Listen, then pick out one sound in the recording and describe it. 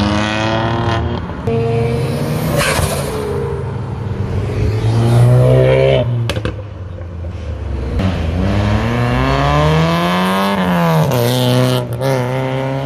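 Loud car engines rev and roar as they drive past close by.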